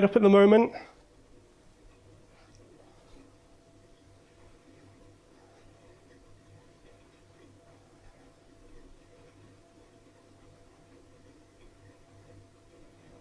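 An arcade machine hums faintly and steadily.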